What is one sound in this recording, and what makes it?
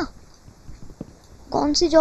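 Crops break with a soft crunch.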